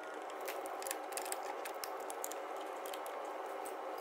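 A ratchet wrench clicks as it turns a bolt.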